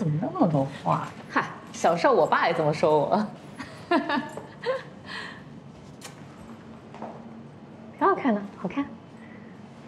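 A woman speaks teasingly and laughs.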